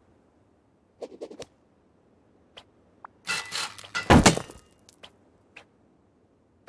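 A hammer strikes metal in sharp knocks.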